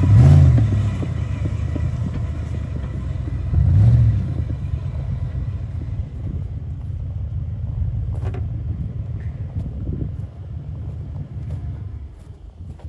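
A car drives away across rough ground and fades into the distance.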